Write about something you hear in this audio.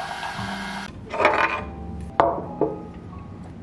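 Eyeglasses clack down on a table.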